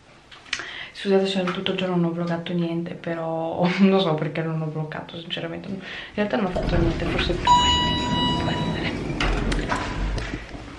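A young woman talks animatedly close to the microphone.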